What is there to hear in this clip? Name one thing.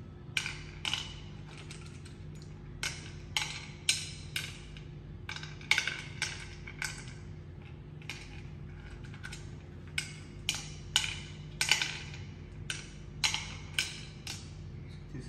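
Wooden game pieces clack sharply onto a wooden board.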